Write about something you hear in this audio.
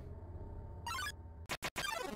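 A short video game alert chime rings.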